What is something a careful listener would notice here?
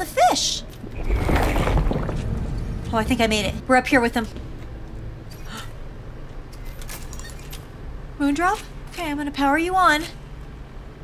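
A young woman talks with animation into a microphone, her voice high and expressive.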